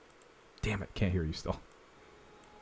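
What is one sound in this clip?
A man speaks briefly and with animation, close to a microphone.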